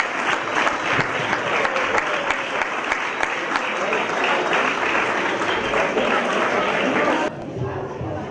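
A group of young people sing together loudly.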